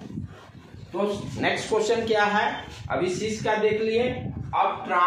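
A middle-aged man speaks loudly and with animation close by.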